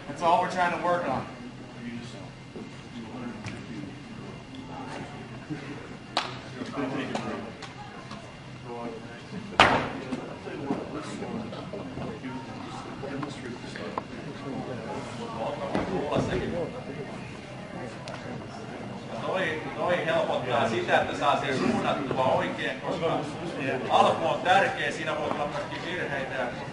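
Several men talk and call out nearby in a large echoing hall.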